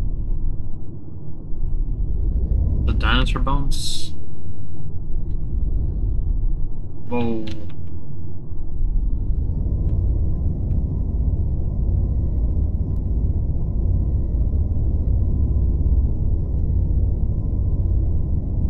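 A vessel's engine rumbles with a deep, steady hum.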